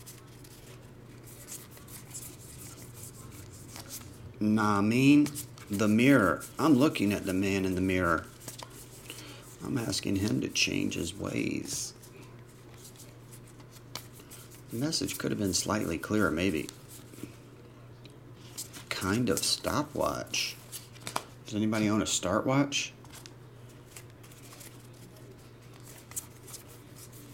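Trading cards rustle and click as they are shuffled through by hand.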